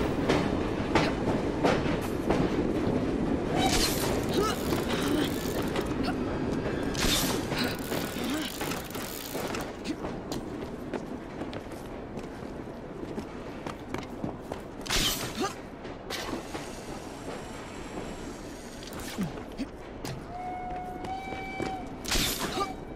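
Footsteps and hand grips scuff on stone as a figure climbs and runs.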